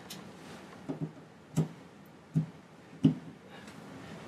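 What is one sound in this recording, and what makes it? A plug clicks into a wall socket.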